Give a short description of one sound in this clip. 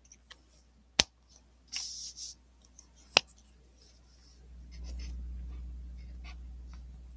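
A sheet of paper rustles and shifts.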